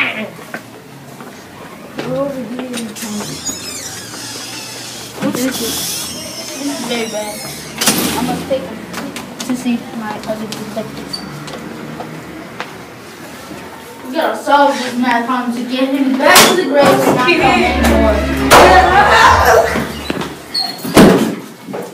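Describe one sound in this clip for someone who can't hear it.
Boys talk close by.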